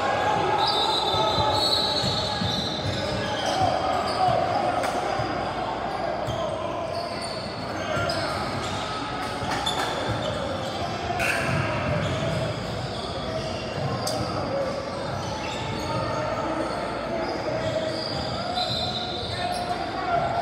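A crowd of spectators chatters steadily in a large echoing gym.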